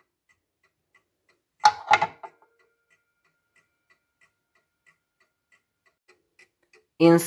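A mechanical clock ticks steadily and softly.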